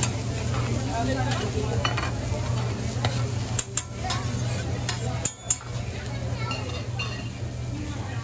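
Chopped onions sizzle on a hot griddle.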